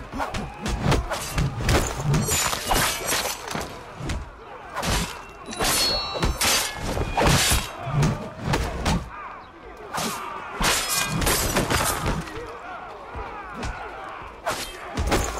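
Swords clash and strike in a fierce fight.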